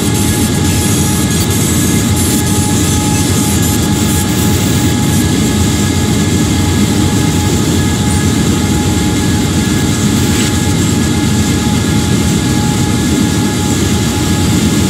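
Train wheels roll over the rails.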